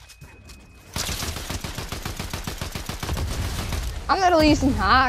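A gun fires rapid shots in quick bursts.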